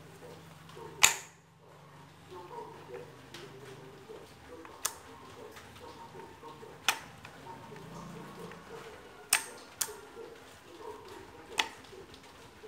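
Gloved hands handle a metal pump, with sharp metallic clicks and knocks now and then.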